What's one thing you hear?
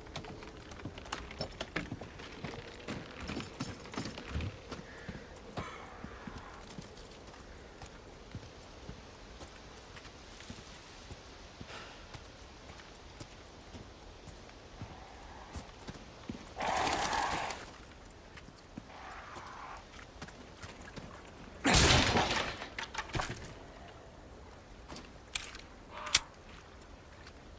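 Footsteps crunch and thud on wooden boards and gravel.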